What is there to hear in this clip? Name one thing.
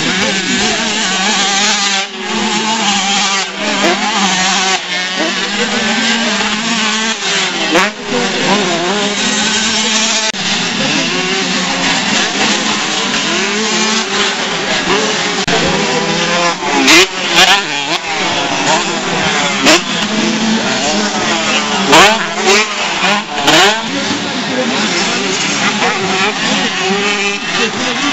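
Dirt bike engines rev and whine loudly, rising and falling in pitch outdoors.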